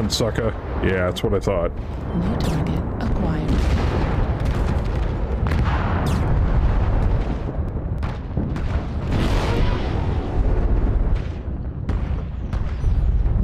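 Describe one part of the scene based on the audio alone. Weapons fire in sharp bursts.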